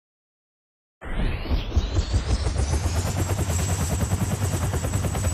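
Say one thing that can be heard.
A helicopter engine starts up with a rising whine.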